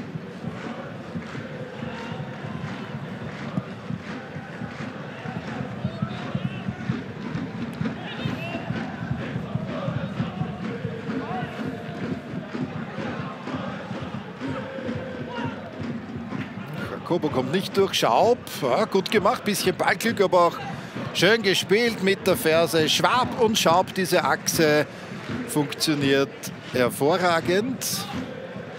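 A large stadium crowd roars and chants steadily in the open air.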